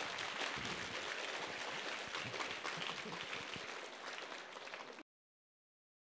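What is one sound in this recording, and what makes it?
A crowd applauds loudly in a hall.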